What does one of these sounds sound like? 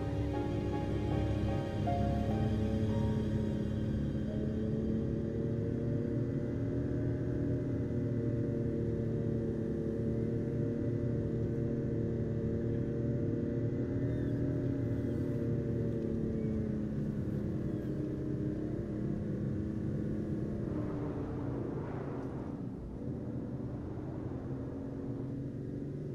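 A car engine hums steadily as the car cruises along a road.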